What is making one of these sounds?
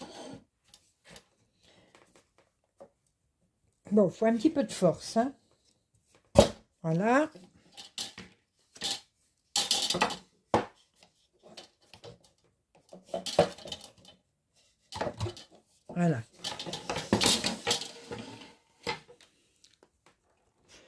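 Wooden frame parts knock and clack as they are fitted together by hand.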